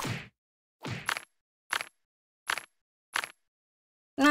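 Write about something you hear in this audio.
Menu buttons click softly.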